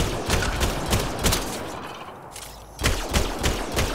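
A rifle fires sharp shots.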